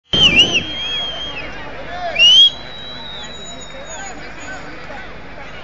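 Fans whistle loudly and shrilly nearby.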